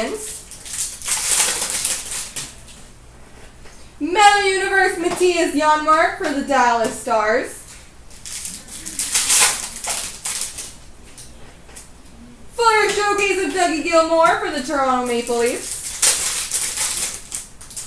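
Foil card packs crinkle as they are torn open.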